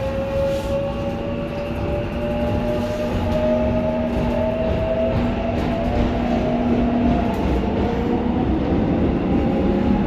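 An electric motor whines and rises in pitch as the train speeds up.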